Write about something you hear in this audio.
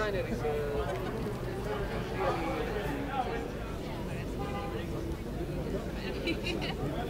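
A crowd of men and women chat nearby outdoors.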